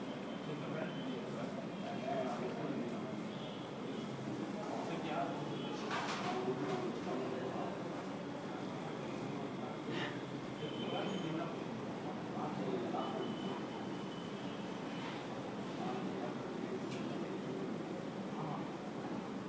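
Liquid pours and splashes from one metal cup into another.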